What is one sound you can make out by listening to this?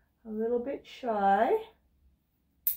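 A woman speaks softly up close.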